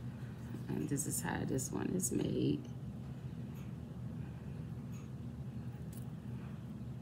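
A metal chain bracelet clinks as it is handled.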